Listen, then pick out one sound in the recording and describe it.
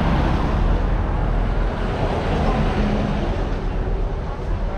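A second truck rumbles past.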